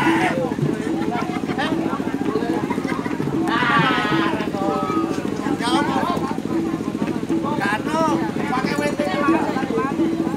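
A crowd of men talks and calls out nearby outdoors.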